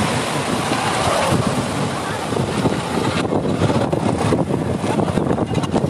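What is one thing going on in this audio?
A motorcycle engine rumbles close by as it rides past.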